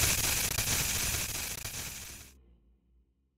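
Loud static hisses and then cuts out.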